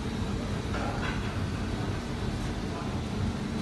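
A ceramic plate is set down on a ridged counter mat.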